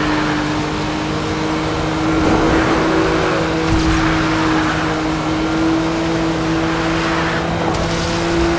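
Tyres hiss and rush over the road.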